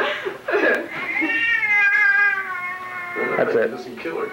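A little girl squeals and chatters in a high voice.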